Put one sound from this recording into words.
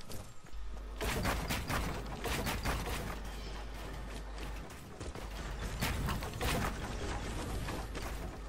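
Wooden boards clatter and knock as walls go up quickly.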